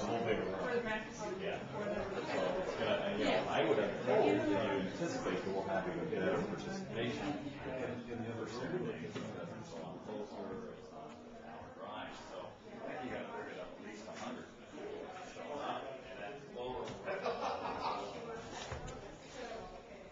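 A man talks nearby in a calm voice.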